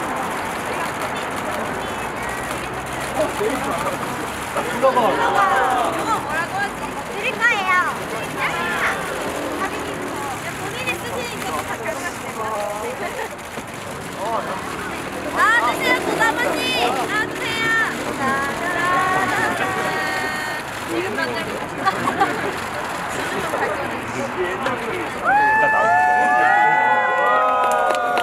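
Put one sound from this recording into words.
Young women talk and laugh nearby.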